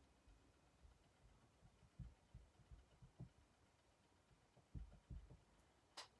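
A rubber stamp taps repeatedly on an ink pad.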